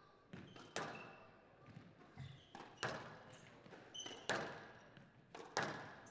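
A squash ball smacks hard against the walls in an echoing court.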